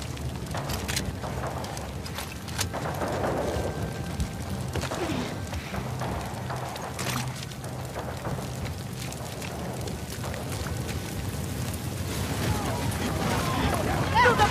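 A large fire crackles and roars as it burns through wooden buildings.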